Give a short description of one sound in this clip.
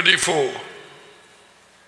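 A man speaks into a microphone close by.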